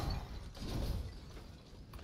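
Debris clatters.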